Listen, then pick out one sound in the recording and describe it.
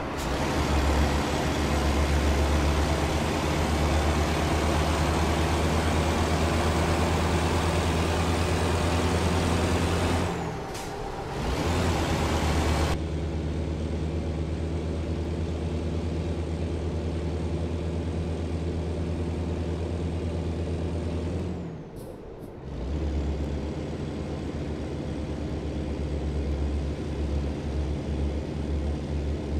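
A truck engine drones steadily with a deep hum.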